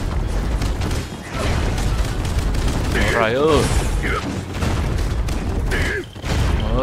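Explosions boom in a busy battle.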